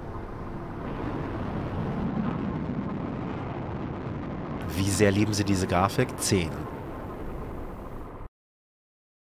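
A game explosion booms and rumbles.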